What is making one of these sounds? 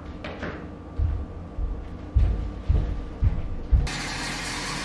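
Footsteps thud on a wooden floor.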